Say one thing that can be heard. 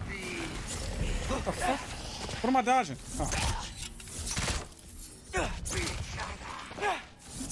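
A man talks into a microphone with animation, close up.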